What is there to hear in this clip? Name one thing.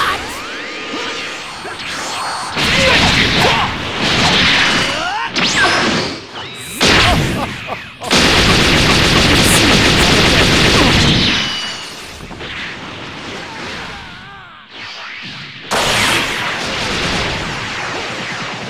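Energy blasts roar and crackle in a fighting game.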